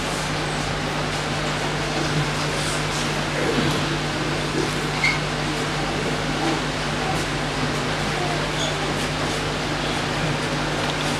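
Loud music plays through a loudspeaker in an echoing room.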